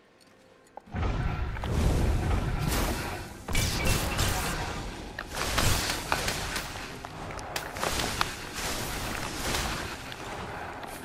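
Magic spells whoosh and crackle loudly.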